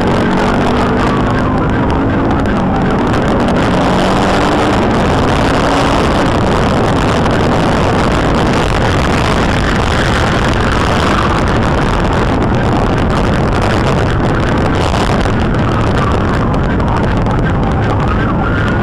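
A police SUV's engine and tyres roar at highway speed.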